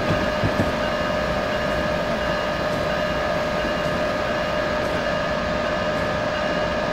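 An electric train's motor hums steadily.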